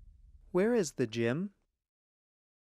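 A man asks a question clearly into a microphone.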